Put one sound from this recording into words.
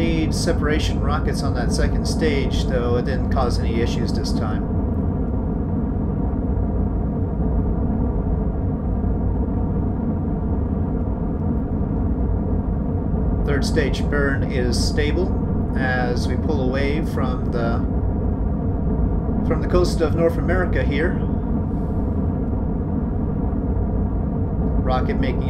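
A rocket engine roars steadily.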